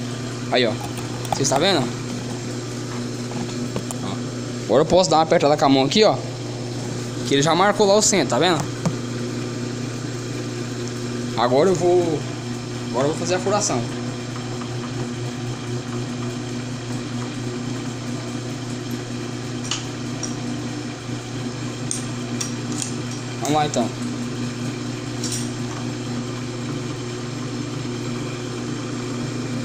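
A lathe motor hums steadily.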